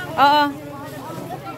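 A woman calls out loudly nearby.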